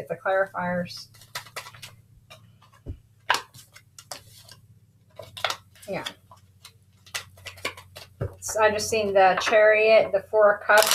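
Cards are shuffled and tapped together with soft slaps and clicks.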